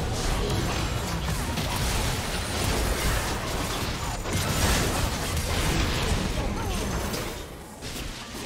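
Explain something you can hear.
Magic blasts and clashing weapons burst out in a fast battle.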